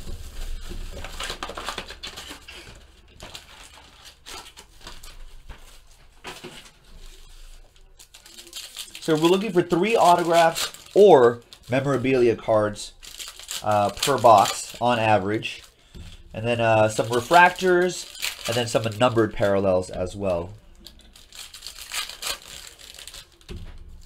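Foil card packs crinkle and tear in someone's hands.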